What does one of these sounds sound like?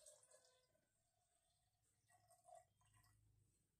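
Water trickles softly from a small pot.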